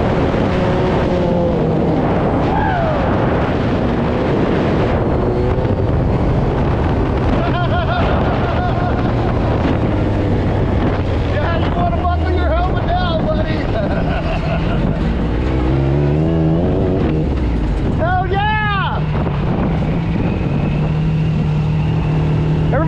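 A buggy engine roars and revs steadily up close.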